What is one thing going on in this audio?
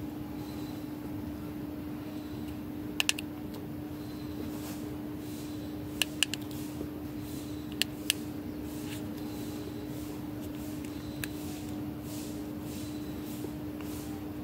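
A finger taps on a touchscreen.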